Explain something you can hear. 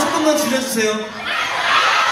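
A young man speaks into a microphone through loudspeakers.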